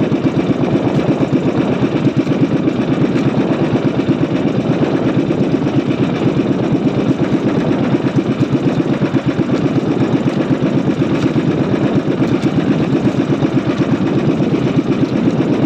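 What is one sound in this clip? A small boat engine putters steadily up close.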